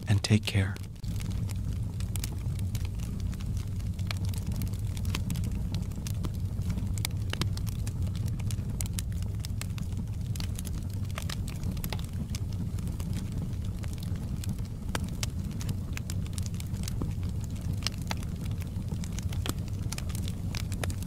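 Flames roar softly with a low rumble.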